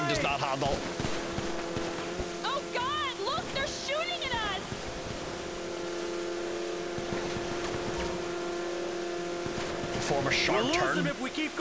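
A watercraft engine drones steadily.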